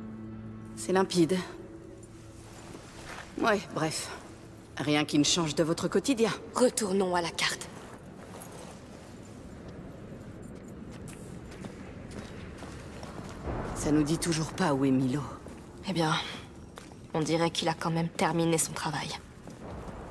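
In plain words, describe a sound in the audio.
Young women talk calmly, close by.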